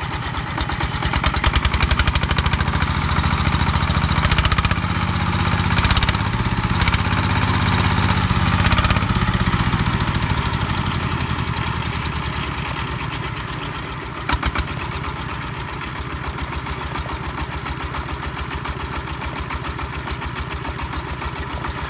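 A single-cylinder tractor engine chugs steadily close by, revving hard and then easing off.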